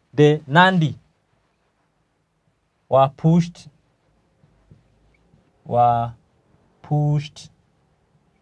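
A man speaks slowly and clearly into a close microphone, in short phrases with pauses.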